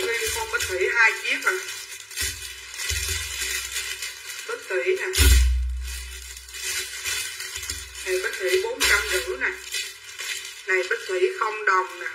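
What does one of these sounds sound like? A woman talks animatedly close by.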